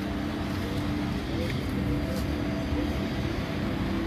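A shovel scrapes into soil.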